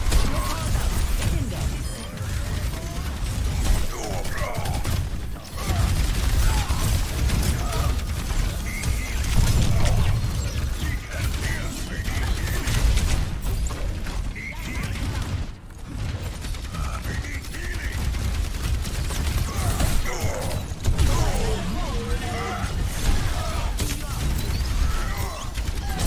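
Gunfire and explosions boom from a game in a steady rumble.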